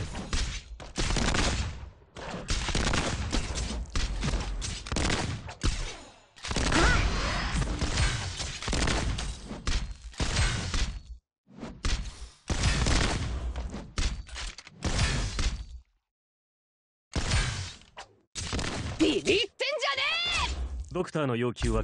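Game sounds of strikes and magic blasts ring out in quick succession.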